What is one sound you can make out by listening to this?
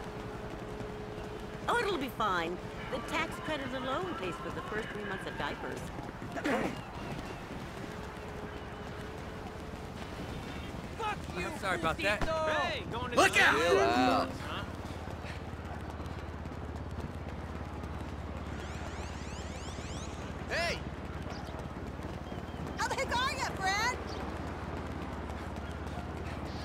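Footsteps run quickly on wooden boards.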